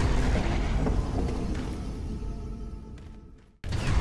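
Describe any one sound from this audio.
Heavy wooden beams crash and clatter.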